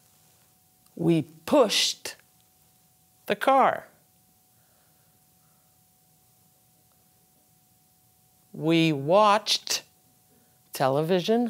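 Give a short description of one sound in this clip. A middle-aged woman reads out short phrases slowly and clearly, close to a microphone, with long pauses between them.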